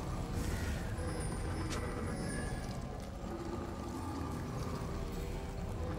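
Magical spell effects whoosh and shimmer.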